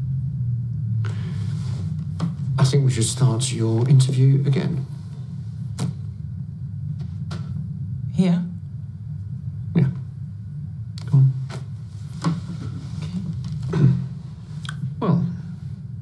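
A middle-aged man speaks quietly and close by.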